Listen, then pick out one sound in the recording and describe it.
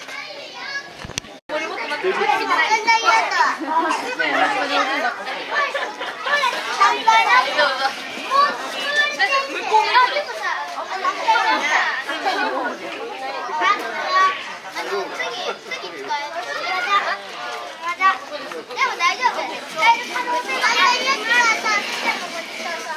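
A crowd of people talks in the background outdoors.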